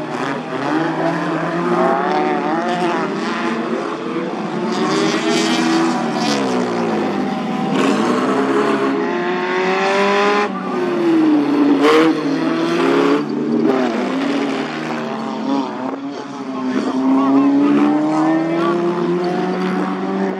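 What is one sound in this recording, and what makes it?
Car engines roar and rev loudly.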